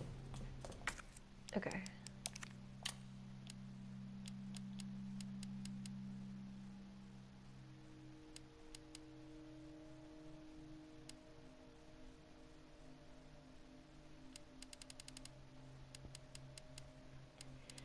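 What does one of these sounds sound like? Short menu clicks tick repeatedly as a selection moves through a list.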